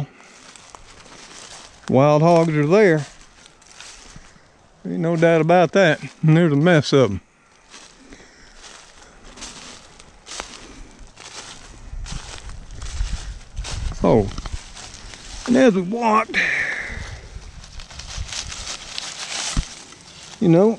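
Dry leaves crunch and rustle underfoot as someone walks.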